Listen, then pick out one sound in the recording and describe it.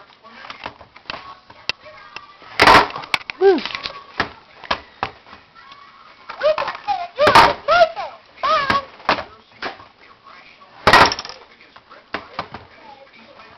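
A baby taps on a plastic toy.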